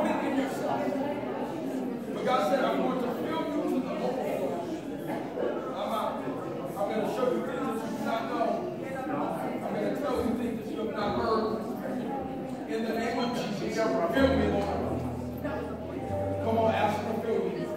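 A congregation sings and shouts together in an echoing hall.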